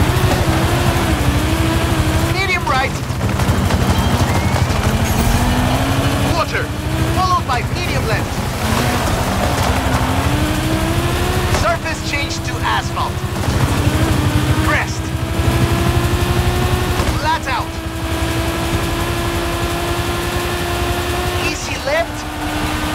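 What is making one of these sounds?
A racing car engine roars, revving high and dropping with each gear change.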